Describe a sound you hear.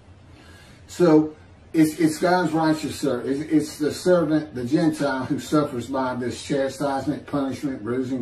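An older man speaks calmly into a microphone, heard as over an online call.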